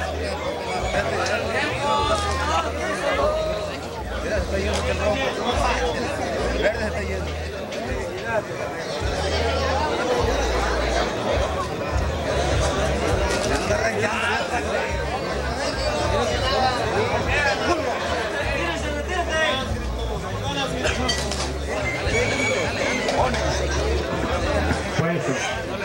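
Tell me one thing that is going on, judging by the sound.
A crowd of men shouts and chatters excitedly nearby.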